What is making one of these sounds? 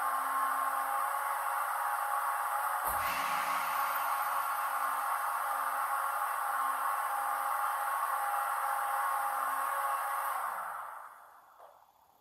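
Heavy rain pours down outside and then stops.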